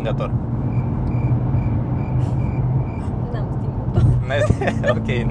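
A car engine hums steadily from inside the cabin.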